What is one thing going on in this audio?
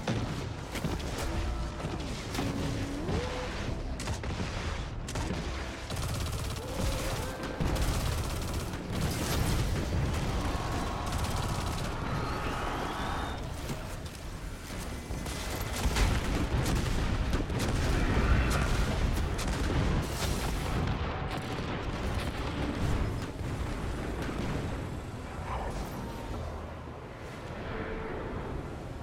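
Gunfire rattles and booms in rapid bursts.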